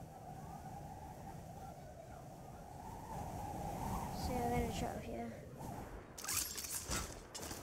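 Wind rushes steadily past a falling figure.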